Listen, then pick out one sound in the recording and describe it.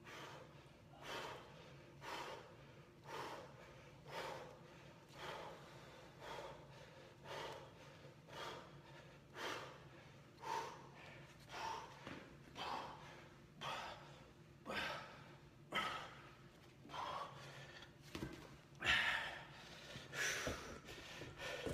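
A young man breathes out hard in short, rhythmic bursts.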